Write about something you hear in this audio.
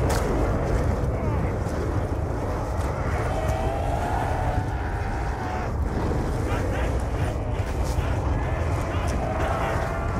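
Wind howls with a low, steady rumble.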